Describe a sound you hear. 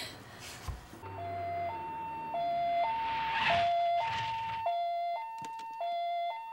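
An ambulance siren wails in a steady two-tone pattern.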